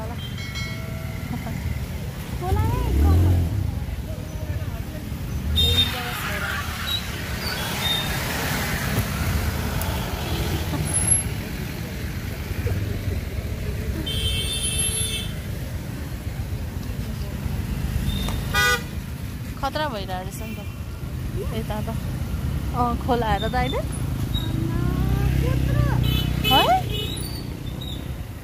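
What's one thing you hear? A motorcycle engine rumbles nearby.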